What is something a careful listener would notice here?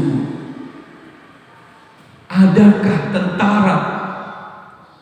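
A man preaches into a microphone with animation, echoing in a large hall.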